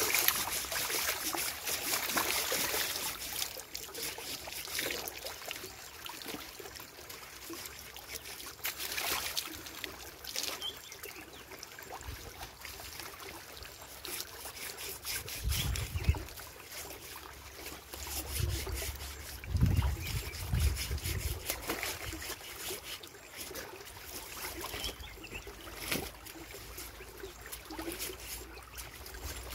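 Water splashes as it is scooped and poured in a shallow stream.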